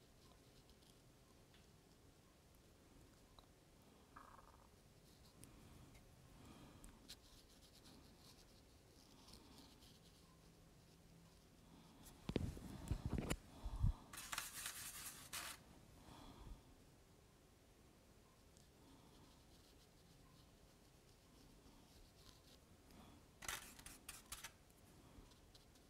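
A paintbrush softly dabs and strokes wet paper.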